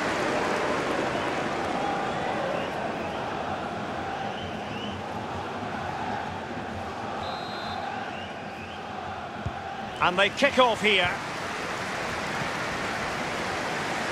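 A large stadium crowd murmurs and cheers steadily.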